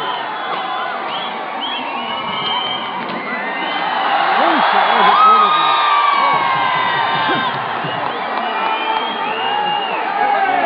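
A large outdoor crowd cheers and chatters loudly.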